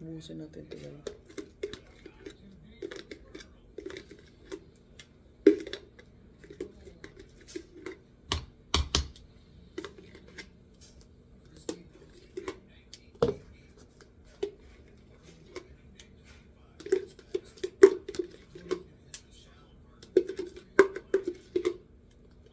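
A metal spoon clinks and scrapes against a plastic jar.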